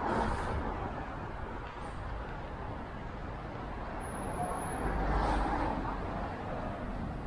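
A steady low city hum fills the air outdoors.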